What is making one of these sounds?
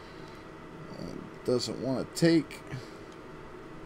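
A soldering iron tip scrapes and taps against a circuit board.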